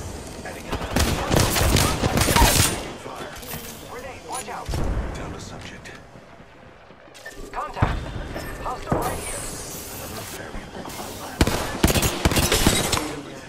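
Automatic gunfire rattles in a video game.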